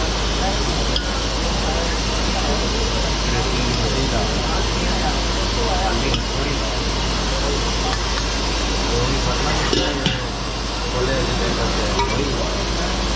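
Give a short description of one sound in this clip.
A metal ladle clinks against steel pots.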